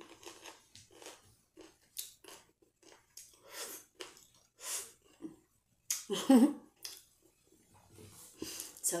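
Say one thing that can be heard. A young woman chews and smacks her lips while eating.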